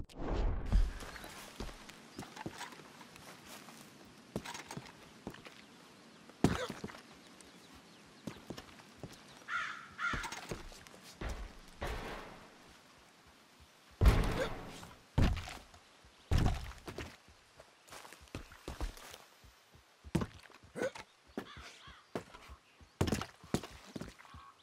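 Footsteps crunch and thump over loose wooden boards.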